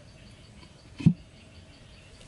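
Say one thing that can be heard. A wooden lid thuds down onto the ground.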